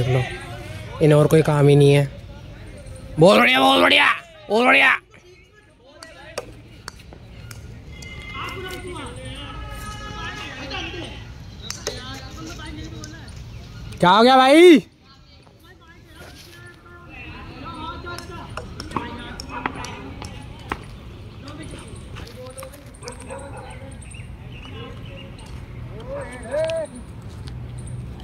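A cricket bat cracks against a ball.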